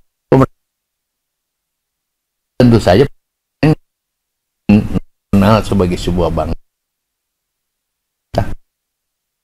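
A man speaks calmly and with some animation into a microphone, in short bursts with pauses.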